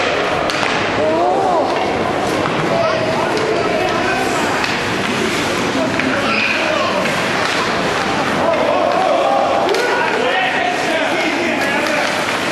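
Spectators cheer and shout nearby in an echoing rink.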